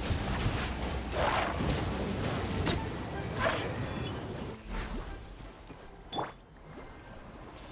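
Electric crackling bursts and zaps ring out in quick succession.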